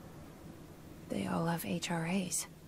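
A woman speaks quietly and close.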